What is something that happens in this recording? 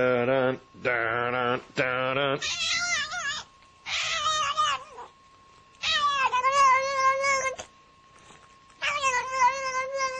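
A cat meows loudly, again and again, in long drawn-out yowls.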